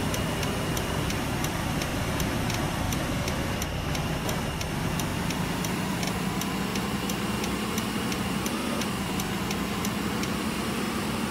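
Clicking ticks of a turn signal sound at a steady pace.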